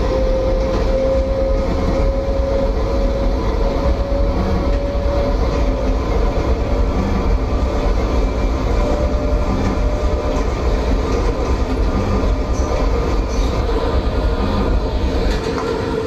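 A subway train's motor whines with a steady tone.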